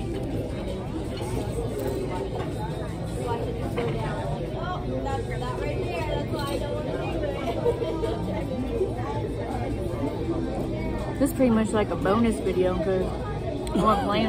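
A woman talks casually close by.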